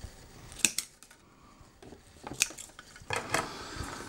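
Scissors snip through ribbon.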